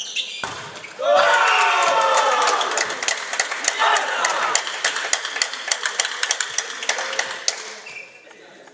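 Young men shout and cheer loudly in an echoing hall.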